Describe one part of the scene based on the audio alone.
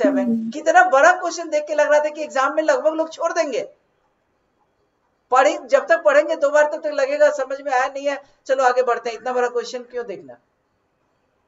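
A young man talks steadily into a close microphone, explaining.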